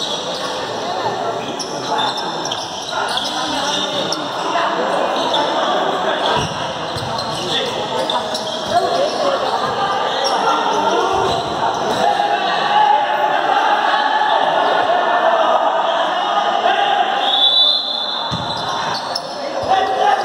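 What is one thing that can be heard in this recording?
Players shout and call out to each other across an echoing indoor court.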